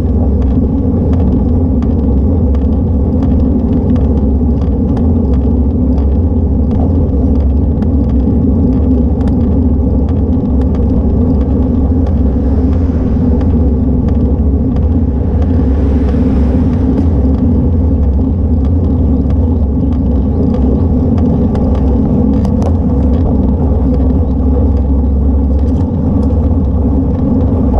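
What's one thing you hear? Wind rushes steadily past a moving bicycle.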